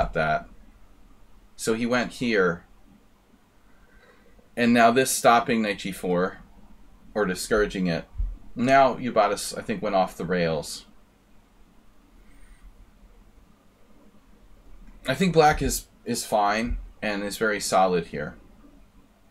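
A middle-aged man talks calmly into a microphone, in short bursts with pauses.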